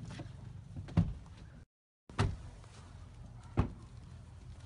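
Car doors slam shut.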